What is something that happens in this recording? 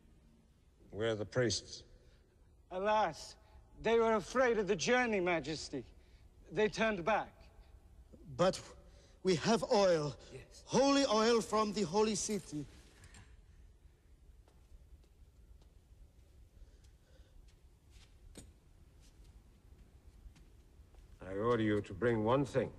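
A man speaks slowly and sternly.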